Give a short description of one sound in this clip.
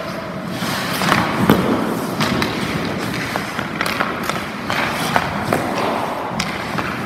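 Hockey skates scrape across ice.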